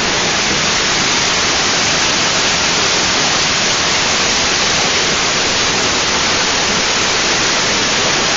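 A stream gurgles gently over rocks.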